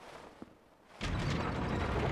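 A heavy lever is pulled and a mechanism starts rumbling loudly.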